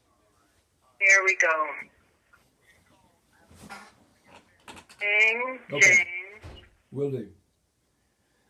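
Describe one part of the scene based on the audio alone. An elderly man talks into a phone close by, with animation.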